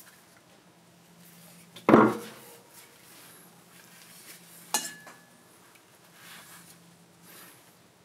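A blade scrapes and shaves wood in short strokes.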